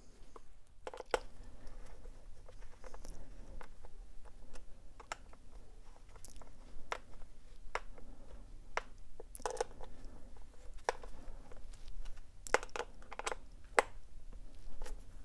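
A screwdriver clicks and scrapes against metal screws.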